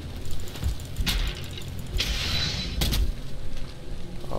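An axe chops into a tree trunk with heavy thuds.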